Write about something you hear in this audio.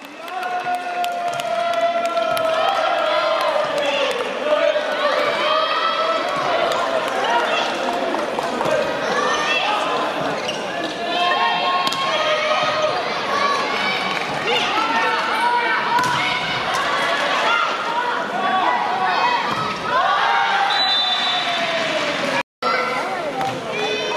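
A large crowd cheers and chants loudly in an echoing hall.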